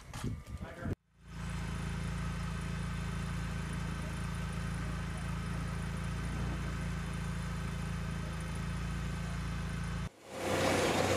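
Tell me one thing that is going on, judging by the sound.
A tracked robot vehicle's engine hums steadily.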